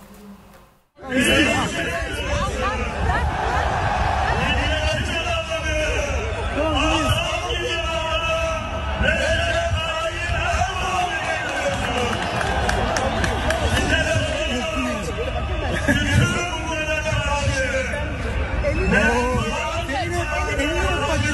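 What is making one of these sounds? A crowd of people talks and calls out loudly outdoors.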